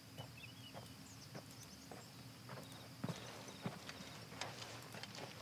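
Footsteps crunch steadily on the ground.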